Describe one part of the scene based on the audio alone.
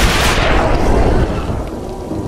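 A loud blast roars.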